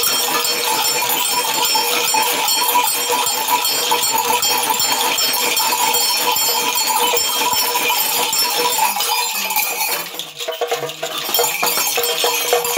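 Shakers rattle rapidly and steadily, close by.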